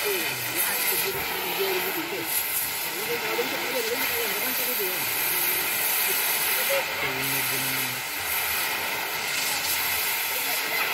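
A cutting torch hisses and crackles steadily against metal.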